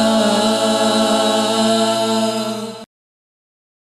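A group of men sing together in unison through loudspeakers, then stop abruptly.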